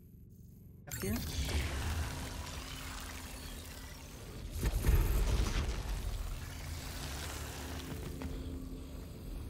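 A device hums and whooshes as it teleports.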